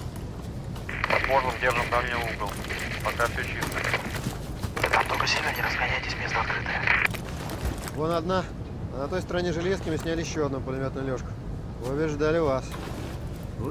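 A man speaks urgently over a radio.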